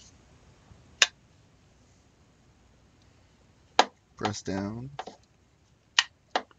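A folding plastic stock clicks sharply as it is folded and locked.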